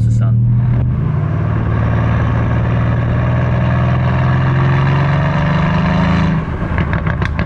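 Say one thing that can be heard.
A car engine roars, rising in pitch as it accelerates.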